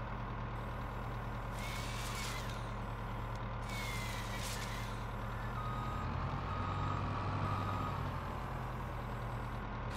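A heavy diesel engine hums steadily.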